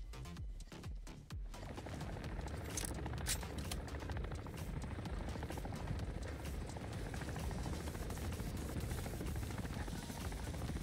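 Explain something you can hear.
A helicopter's rotor drones loudly and steadily overhead.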